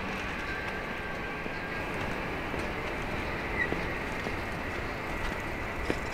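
A railway crossing bell rings steadily nearby.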